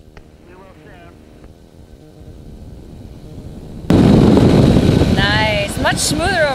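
A small aircraft engine drones steadily.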